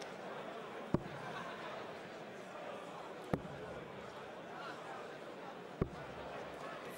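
Darts thud into a board one after another.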